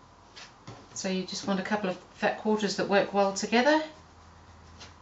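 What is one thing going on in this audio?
A middle-aged woman speaks calmly into a nearby microphone.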